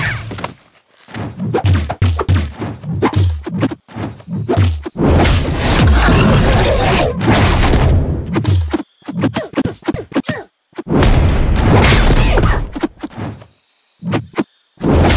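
Game fighters trade punches and kicks with sharp impact thuds.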